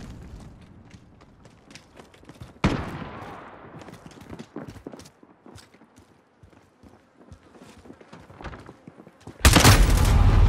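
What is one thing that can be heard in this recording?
Footsteps crunch quickly on gravel and dirt.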